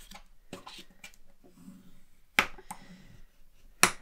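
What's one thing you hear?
A plastic tool scrapes along card stock.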